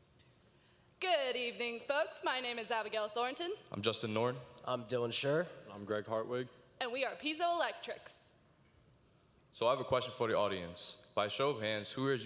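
A young woman speaks into a microphone, amplified through loudspeakers in a large hall.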